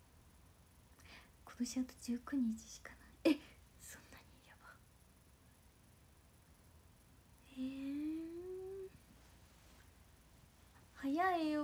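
A young woman speaks softly and playfully close to a microphone.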